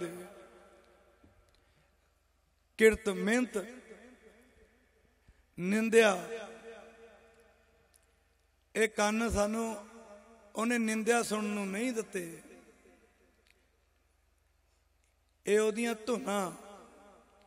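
A young man speaks loudly with animation into a microphone over loudspeakers, with echo.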